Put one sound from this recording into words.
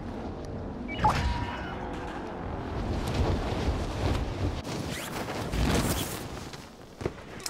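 Wind rushes loudly past during a fall through the air.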